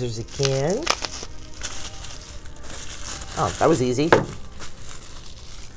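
Bubble wrap crinkles and rustles as hands handle it.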